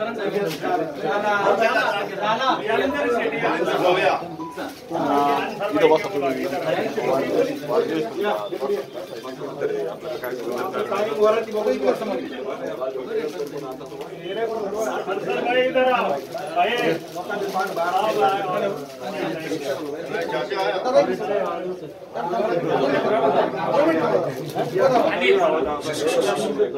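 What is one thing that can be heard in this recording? Several men talk at once nearby, with animation.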